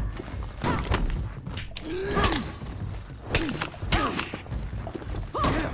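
Heavy blows thud against armour.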